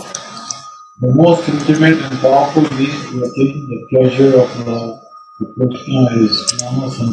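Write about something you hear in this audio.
A man reads aloud steadily, heard through an online call.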